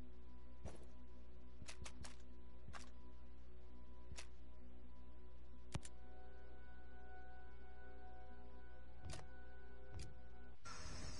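Menu clicks sound sharply now and then.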